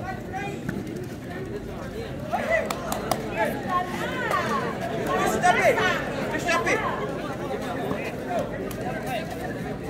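A crowd of spectators chatters and shouts.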